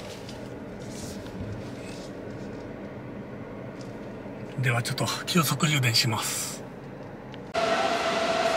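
A car engine hums quietly as the car creeps forward.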